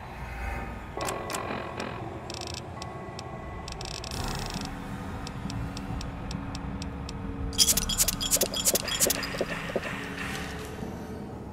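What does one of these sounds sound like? Game menu clicks tick quickly, one after another.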